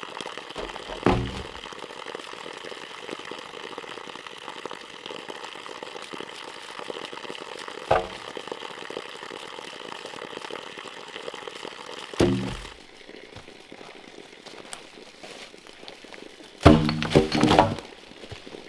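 A bamboo pole thuds onto the forest floor.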